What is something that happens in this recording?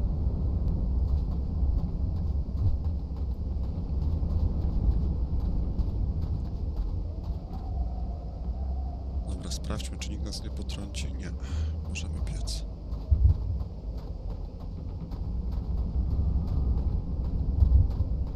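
Footsteps crunch in deep snow.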